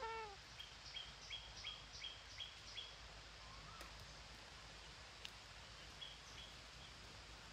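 Parakeets chirp in quick repeated calls close by.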